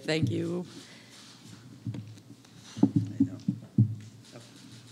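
A middle-aged woman speaks emotionally into a microphone.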